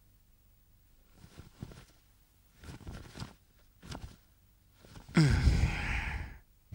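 A blanket rustles as it is shaken out and pulled over a bed.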